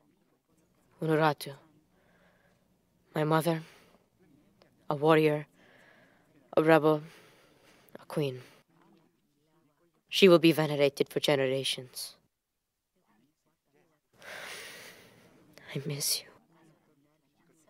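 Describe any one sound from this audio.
A young man speaks softly and with emotion, close by.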